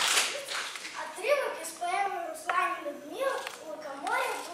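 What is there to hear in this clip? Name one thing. A young boy sings nearby.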